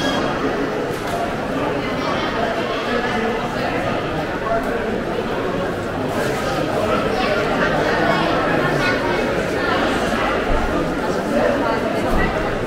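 A crowd of shoppers chatters in a large echoing hall.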